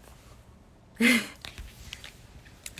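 A young woman laughs briefly.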